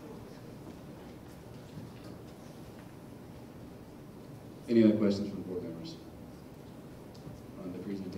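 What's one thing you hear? A man speaks through a microphone and loudspeakers in a large echoing hall.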